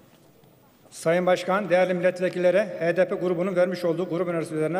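A middle-aged man reads out into a microphone in a large hall.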